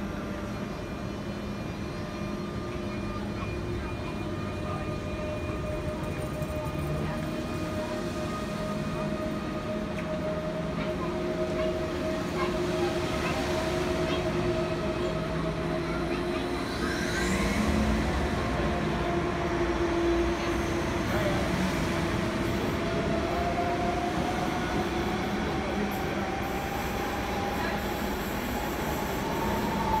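A high-speed train rumbles and whines as it rolls past close by.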